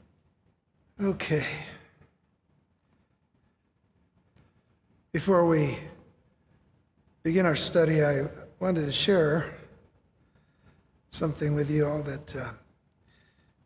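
An older man speaks slowly into a microphone, with pauses.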